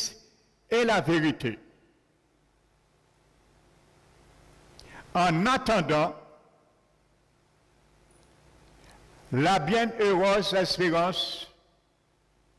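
A middle-aged man preaches with animation through a microphone, in short bursts with pauses.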